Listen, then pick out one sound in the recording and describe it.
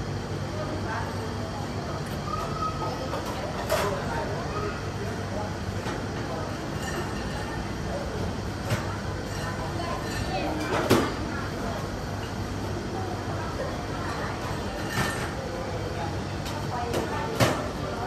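A young woman slurps noodles loudly up close.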